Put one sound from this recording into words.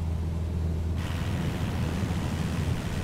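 Wind rushes past a plane.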